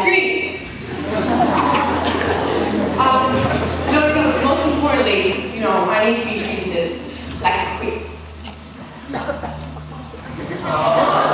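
A large crowd of young people chatters and calls out in an echoing hall.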